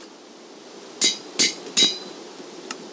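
An anvil clangs sharply a few times.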